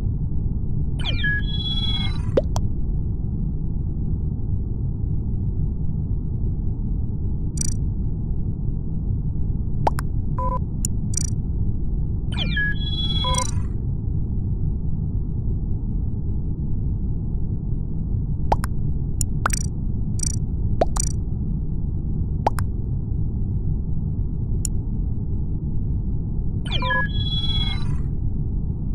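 A short electronic chime sounds a few times.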